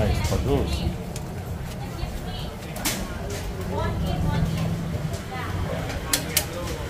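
Noodles swish and drip in a wire strainer.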